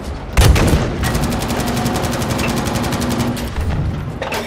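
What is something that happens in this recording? A machine gun rattles in a rapid burst.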